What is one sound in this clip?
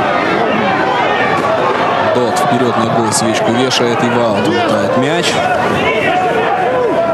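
A crowd in the stands of an outdoor stadium chants and shouts.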